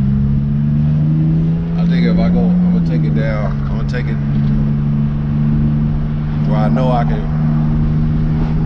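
A car engine hums from inside the car as it drives.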